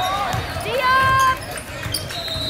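A referee's whistle blows once sharply.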